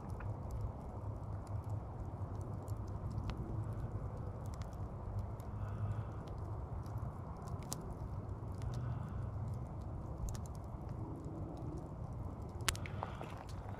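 Glowing embers crackle and pop softly.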